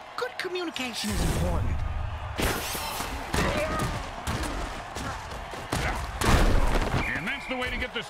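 Armored players crash together with heavy, booming thuds.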